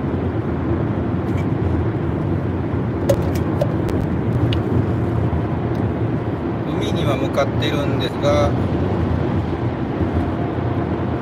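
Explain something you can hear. A car engine and tyres rumble steadily from inside a moving car.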